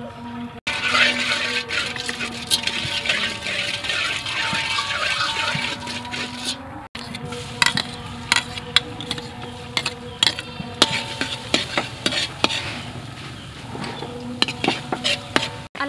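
A metal ladle scrapes and clinks against a wok.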